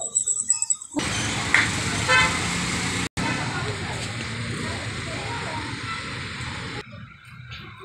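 Traffic murmurs along a street outdoors.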